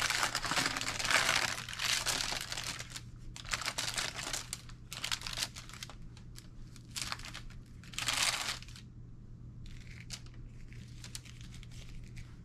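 Paper packaging crinkles and rustles as it is handled and unfolded.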